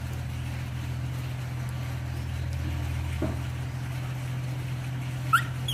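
A baby monkey chews and nibbles on fruit.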